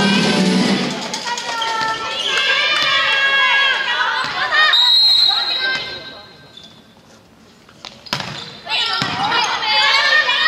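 Sports shoes squeak sharply on a hard court in a large echoing hall.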